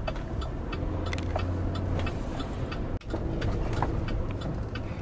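A car engine hums low and steady from inside the car as it drives.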